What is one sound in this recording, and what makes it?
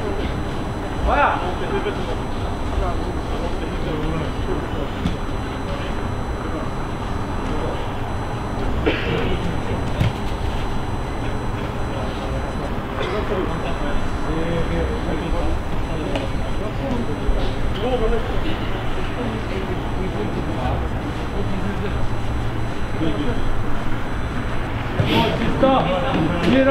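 Young men call out to one another on an open pitch, heard from a distance.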